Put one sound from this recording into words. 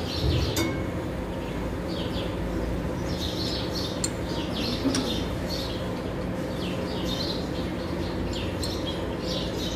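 A ratchet wrench clicks in quick bursts as it turns a bolt.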